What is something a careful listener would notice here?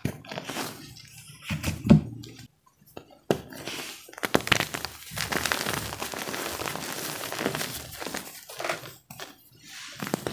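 Hands squeeze and crumble soft chalky powder with a dry crunching rustle, close up.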